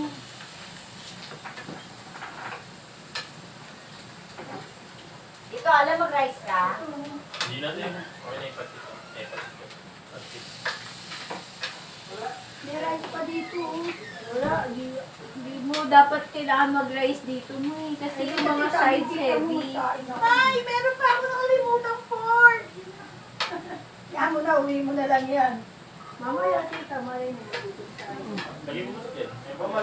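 Metal tongs clink against a wok.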